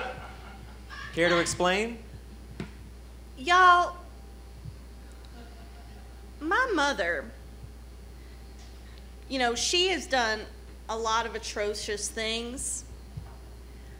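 Young women speak in turn on a stage, heard from the audience in a hall.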